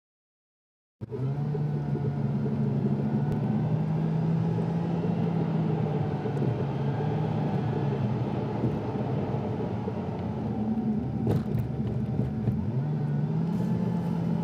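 A car engine hums steadily from inside the car while driving.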